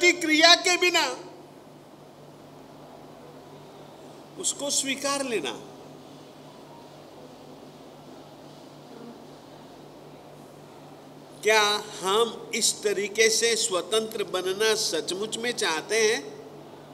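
An elderly man speaks expressively into a microphone, chanting at times, with pauses.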